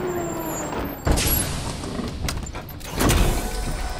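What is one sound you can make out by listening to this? Heavy metal thuds boom from a walking machine.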